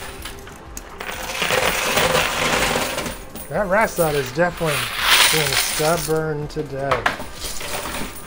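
Coins clink and slide as a machine's pusher shoves them forward.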